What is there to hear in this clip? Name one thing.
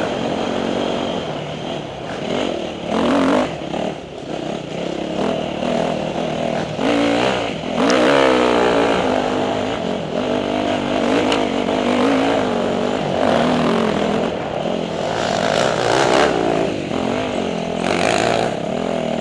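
Tyres crunch and rattle over a bumpy dirt trail.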